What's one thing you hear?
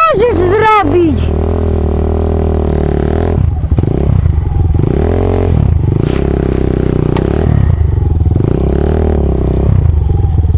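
A dirt bike engine revs loudly, over and over, rising and falling.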